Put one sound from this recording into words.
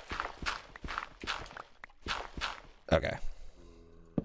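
Blocks of dirt crunch as they are dug away.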